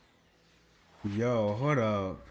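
A young man exclaims loudly close to a microphone.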